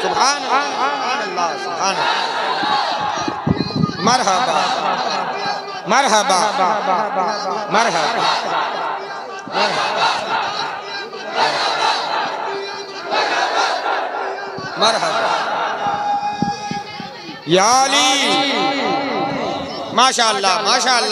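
A crowd of men shouts along with enthusiasm.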